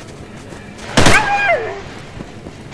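A rifle fires a short, loud burst.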